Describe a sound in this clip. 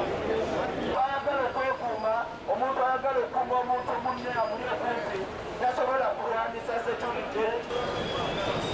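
A man speaks loudly through a megaphone.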